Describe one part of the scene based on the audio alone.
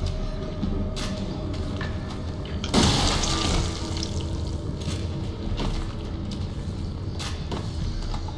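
A shotgun's slide racks with a sharp metallic clack.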